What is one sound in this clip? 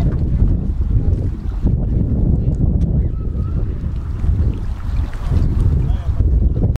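Small waves lap gently against stones at the water's edge.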